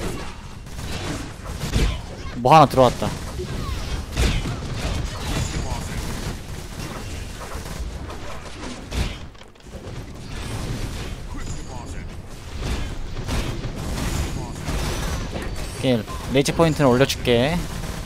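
Game combat effects clash and burst in quick, loud blasts.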